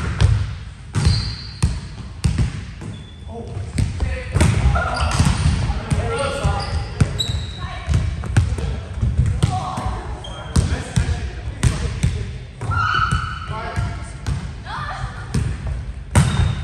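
Sneakers squeak on a wooden floor in a large echoing hall.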